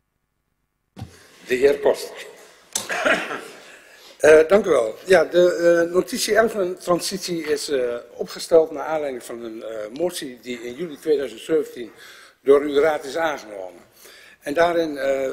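A middle-aged man speaks calmly through a microphone.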